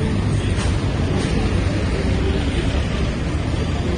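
A van engine idles close by.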